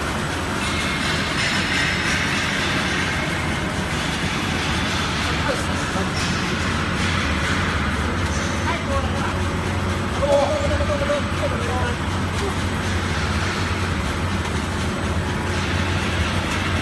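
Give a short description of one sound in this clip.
Factory machinery hums and rattles steadily.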